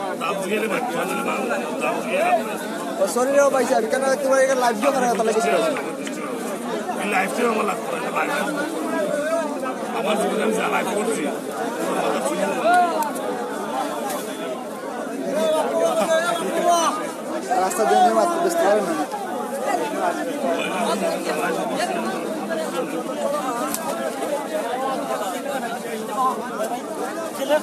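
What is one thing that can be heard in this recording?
Several men talk loudly at once nearby, amid busy crowd chatter.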